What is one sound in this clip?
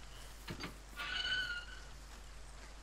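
A metal gate creaks open.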